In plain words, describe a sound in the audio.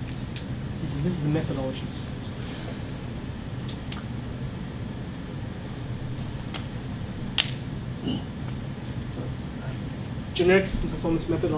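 A young man speaks calmly into a room with a slight echo.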